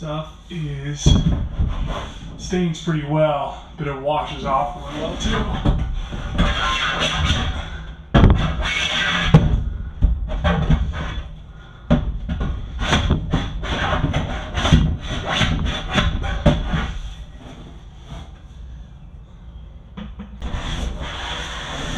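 A pressure washer jet sprays water hard against a metal surface.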